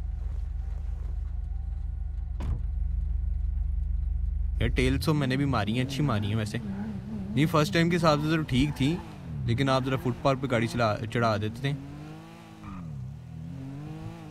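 A car engine hums and revs as a car drives off.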